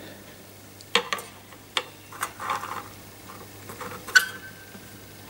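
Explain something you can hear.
A metal ruler taps against guitar strings.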